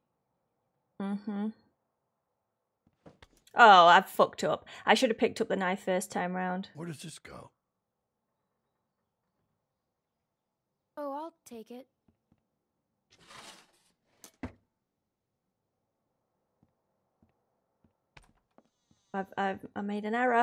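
A young woman speaks into a microphone with animation, in short bursts.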